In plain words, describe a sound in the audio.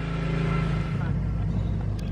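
A BMW M3 straight-six engine runs as the car drives off.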